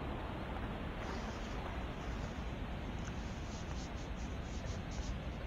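Water splashes as a small figure swims.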